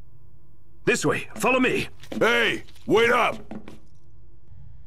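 A young man speaks in a low, calm voice, close by.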